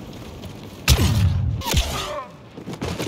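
Laser blasts crack loudly and close by.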